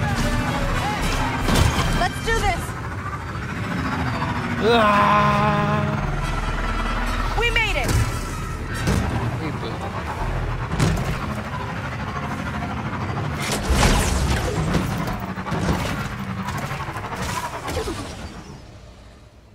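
A motorcycle engine roars and revs steadily.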